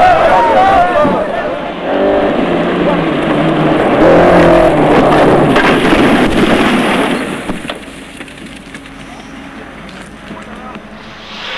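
A rally car engine roars and revs at high speed.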